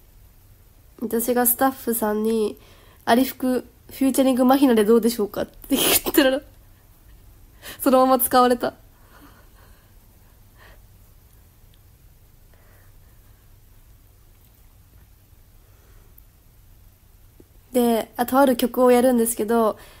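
A young woman talks softly and cheerfully close to the microphone.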